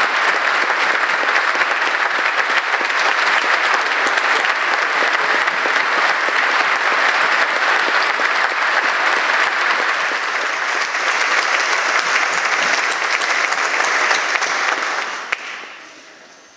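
A large crowd applauds loudly in an echoing hall, then stops.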